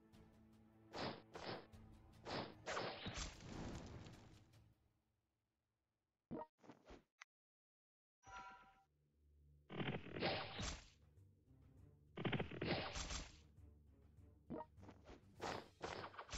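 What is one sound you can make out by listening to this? Swords clash in a battle.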